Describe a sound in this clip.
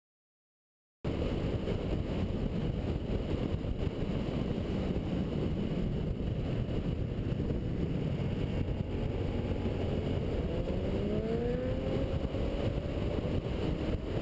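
A motorcycle engine hums steadily, rising in pitch as it speeds up.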